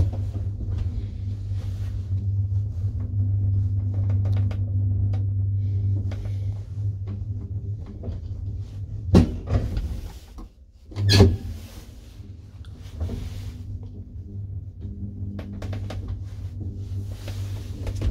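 An elevator hums steadily as it travels.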